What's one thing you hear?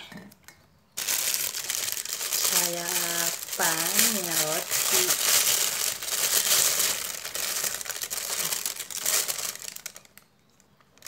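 A plastic bag rustles and crinkles loudly.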